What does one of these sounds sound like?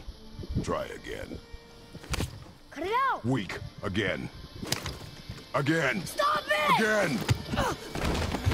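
A boy shouts with strain and effort.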